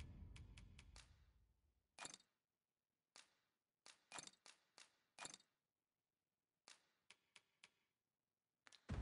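Short menu clicks and chimes sound one after another.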